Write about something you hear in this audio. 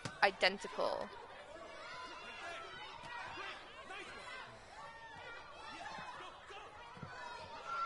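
Young men in a crowd chatter and call out encouragement.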